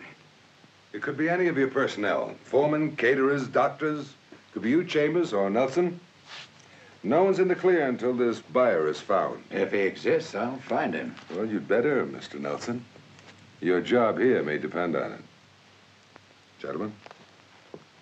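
A middle-aged man speaks calmly and firmly nearby.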